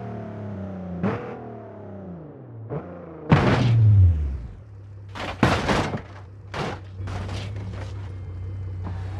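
A car crashes and tumbles with loud metal impacts.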